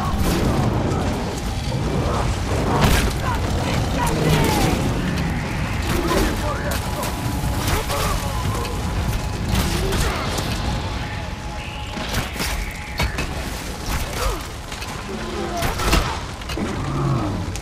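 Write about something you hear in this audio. A bowstring snaps as arrows are loosed.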